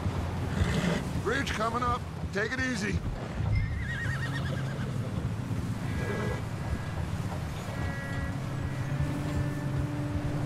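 Horse hooves thud steadily on snowy ground.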